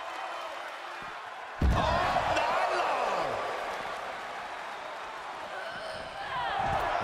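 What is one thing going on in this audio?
A crowd cheers and roars throughout.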